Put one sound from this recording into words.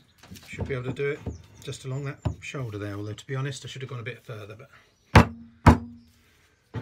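Metal holdfasts are knocked into a wooden bench with sharp thumps.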